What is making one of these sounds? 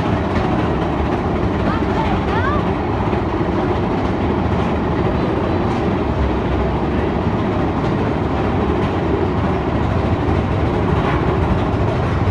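A ride vehicle rumbles steadily along a track.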